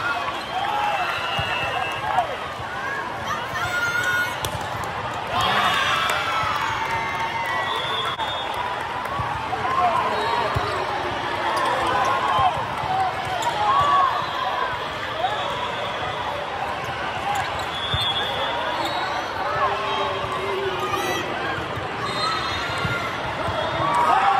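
A volleyball thumps as players hit it.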